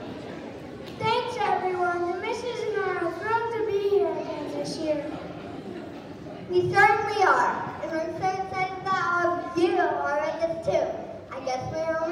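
A choir of children sings together.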